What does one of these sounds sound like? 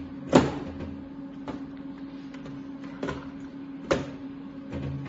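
Plastic parts click and knock as a cartridge is pushed into a machine.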